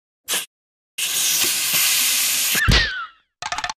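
Air hisses loudly as something is blown up.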